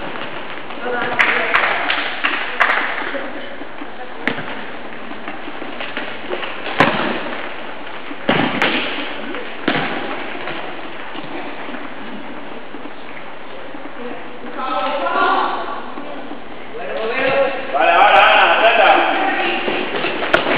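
Young players shout to each other across an echoing hall.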